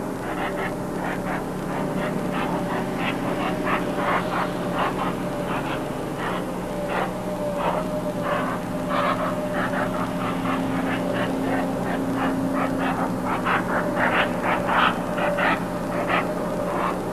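An aircraft's engines hum steadily as it taxis.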